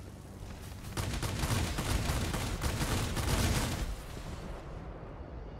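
A plane crashes with a loud rumbling explosion.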